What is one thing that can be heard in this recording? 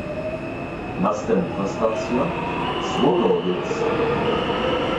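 Rails clatter and squeal under the train.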